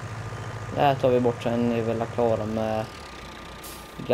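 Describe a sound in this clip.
A tractor engine hums as the tractor drives.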